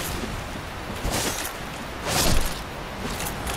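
A sword swings through the air with sharp whooshes.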